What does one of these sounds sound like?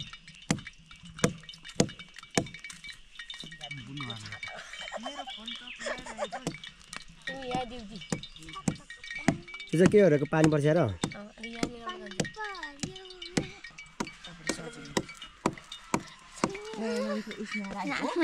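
Rain drops patter and tap nearby.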